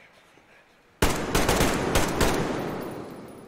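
A rapid burst of gunfire rings out loudly.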